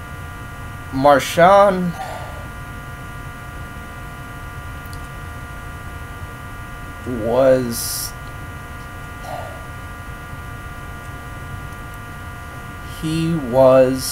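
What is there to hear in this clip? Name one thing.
A young man speaks in short, brief bursts close to the microphone.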